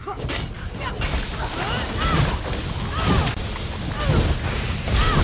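Lightning crackles and bursts loudly.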